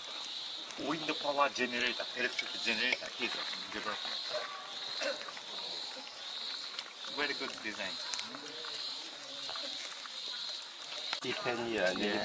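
Middle-aged men talk with animation close by outdoors.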